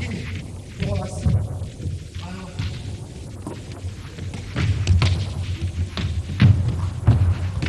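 A ball bounces on a hard floor in a large echoing hall.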